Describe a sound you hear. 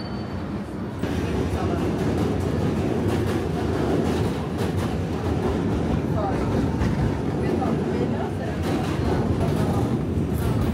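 A train rumbles and rattles along steadily.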